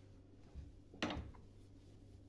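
Something knocks sharply against a metal sink.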